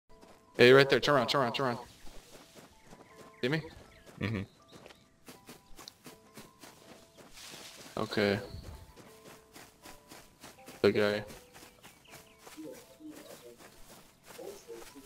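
Footsteps crunch steadily over dirt and grass.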